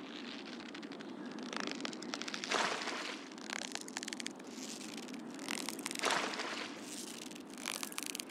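Water splashes as a hooked fish thrashes.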